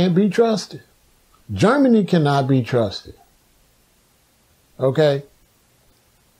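A man speaks calmly and close up, in short phrases with pauses.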